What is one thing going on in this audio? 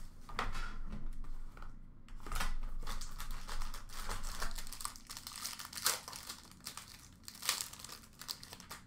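A cardboard box and its wrapping rustle and crinkle as hands open it.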